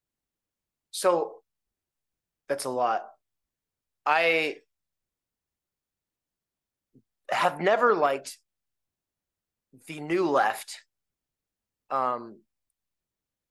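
A young man speaks with animation over an online call, in short bursts with pauses.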